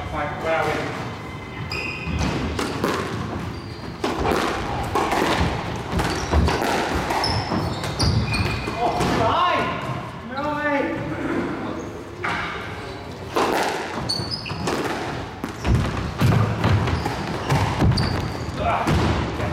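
A squash ball smacks hard against the walls in a large echoing court.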